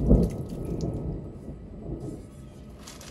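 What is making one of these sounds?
Food tumbles and splashes from one pot into another.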